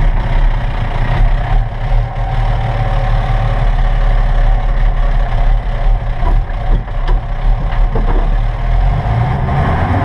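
Branches scrape and slap against a vehicle's windshield.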